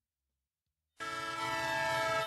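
Steady game music starts playing.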